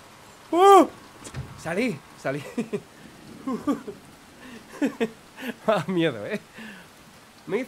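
A young man talks animatedly into a microphone.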